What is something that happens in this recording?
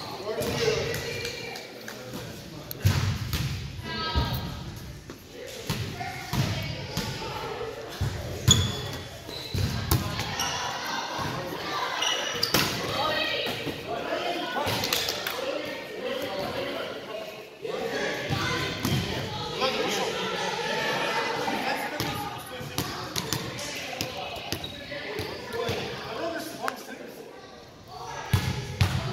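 Men call out and talk to each other in a large echoing gym.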